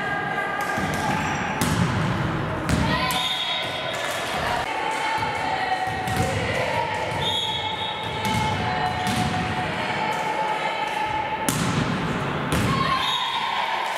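A volleyball is struck and bounces on a hard floor in a large echoing hall.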